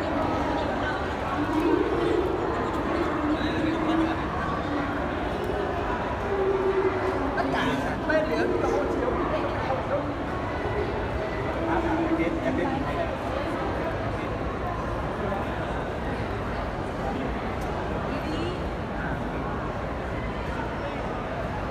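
A crowd of people talks and murmurs nearby in a large echoing hall.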